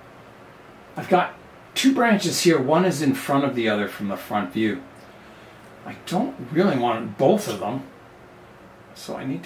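An older man talks calmly close by.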